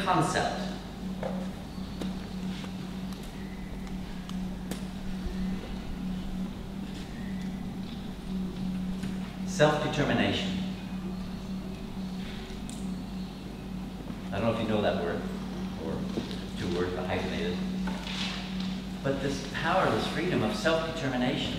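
An older man speaks to a group in a large, slightly echoing room.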